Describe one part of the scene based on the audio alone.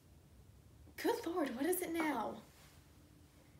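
A young woman speaks calmly in a room.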